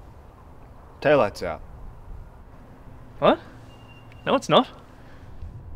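A man speaks in short, puzzled remarks.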